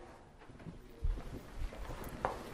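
A glass door closes with a thud.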